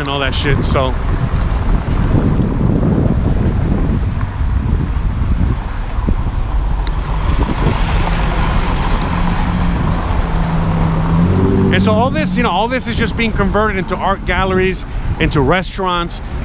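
Cars drive past on a street nearby.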